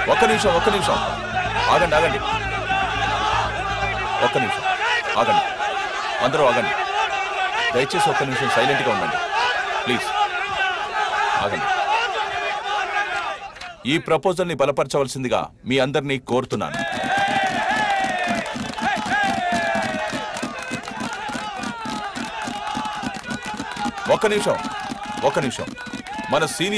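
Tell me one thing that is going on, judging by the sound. A large crowd of men cheers and shouts loudly.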